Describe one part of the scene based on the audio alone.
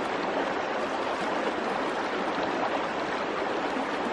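Thick liquid pours from a pot into a metal basin.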